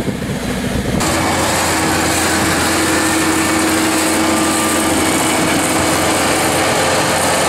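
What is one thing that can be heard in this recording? Paint hisses from a spray nozzle.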